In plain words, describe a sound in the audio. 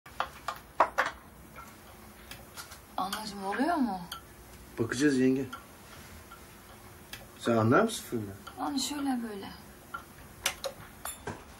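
Metal clicks and clatters as something is handled.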